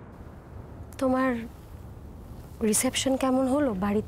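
A woman speaks emotionally nearby.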